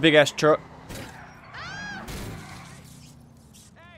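A car crashes into a post with a metallic bang.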